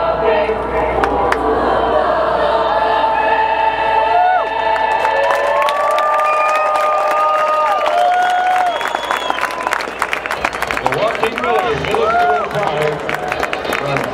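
A large youth choir sings together outdoors in an open stadium.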